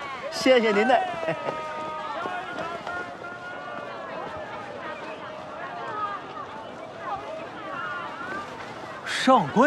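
A crowd murmurs in a busy street.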